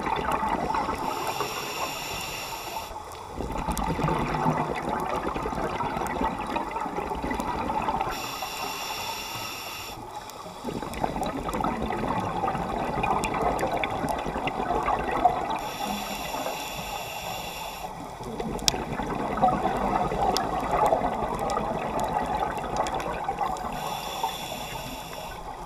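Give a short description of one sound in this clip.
A diver breathes underwater through a scuba regulator, with hissing inhales.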